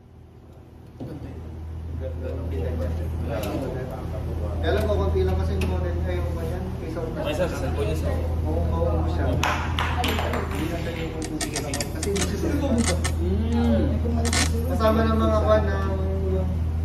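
Several men talk nearby with animation.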